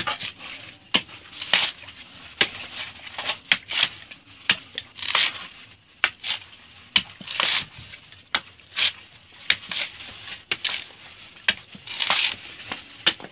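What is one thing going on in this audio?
A machete chops into a coconut husk with sharp, repeated knocks.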